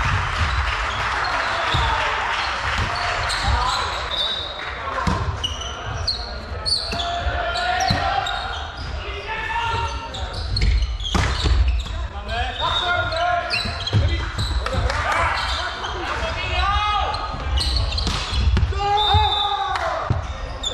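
Players shout and call to each other in a large echoing hall.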